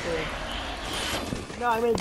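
A magic beam blasts with a buzzing roar.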